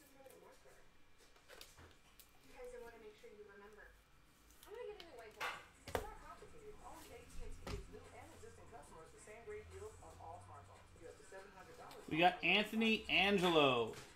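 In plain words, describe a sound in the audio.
Trading cards rustle and slide between fingers.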